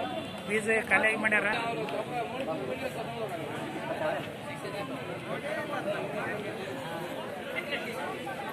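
Several men talk at once nearby.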